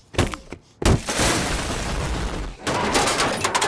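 A large explosion roars and rumbles.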